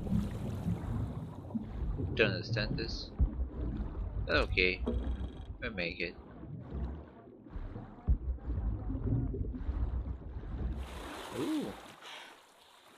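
Water rumbles and bubbles in a muffled way underwater.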